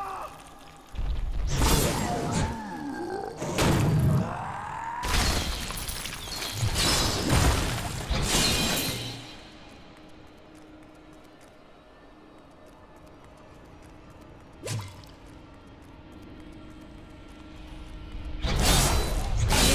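Heavy blows, crashes and magic blasts ring out in a fight.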